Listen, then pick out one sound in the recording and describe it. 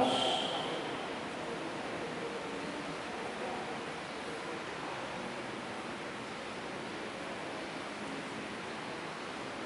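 A man speaks calmly into a microphone, heard over loudspeakers in a large echoing hall.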